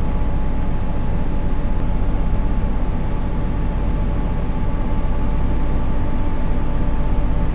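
A train engine hums steadily as it speeds up along the track.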